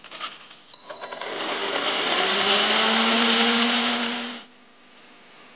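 A blender whirs loudly and then stops.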